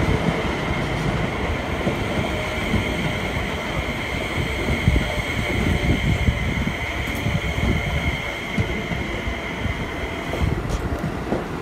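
A train's motor whines steadily and then cuts off.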